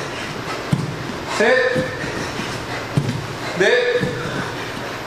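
Feet and hands thud on a padded floor.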